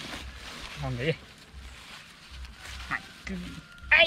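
A plastic bag rustles.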